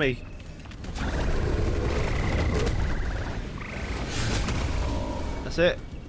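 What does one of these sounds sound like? Explosions and blasts rumble in a video game battle.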